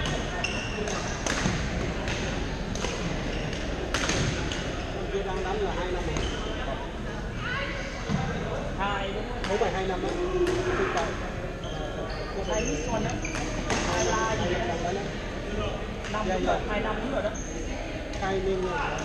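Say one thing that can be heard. Shuttlecocks are struck with rackets in sharp pops, echoing in a large hall.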